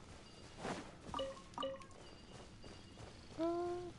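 Short bright chimes ring as items are picked up.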